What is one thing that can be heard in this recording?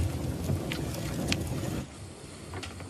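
A fire roars and crackles close by.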